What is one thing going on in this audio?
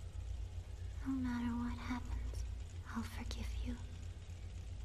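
A young woman speaks softly and weakly, close by.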